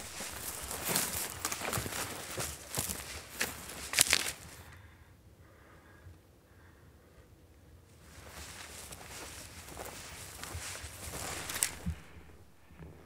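Footsteps crunch through dry brush.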